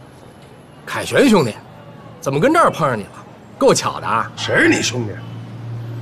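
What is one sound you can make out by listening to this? A man with a rough voice speaks teasingly, close by.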